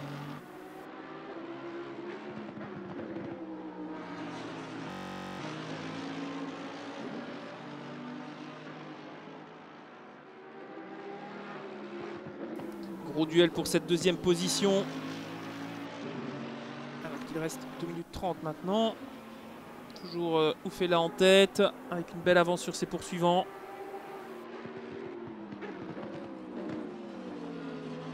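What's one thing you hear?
Racing car engines roar and whine as they change gear.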